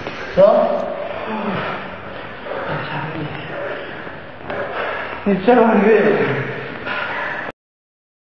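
Young men talk and laugh loudly in a large echoing hall.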